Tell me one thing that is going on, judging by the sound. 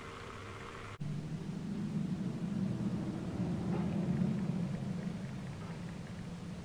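A model train rumbles along the track.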